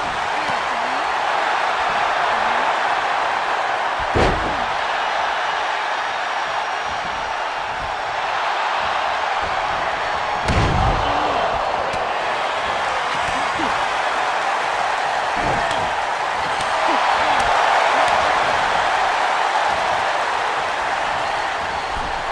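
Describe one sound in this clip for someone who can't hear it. A large crowd roars and cheers steadily throughout.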